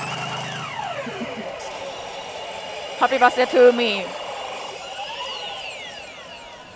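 A pachinko machine plays electronic jingles and chiming tones.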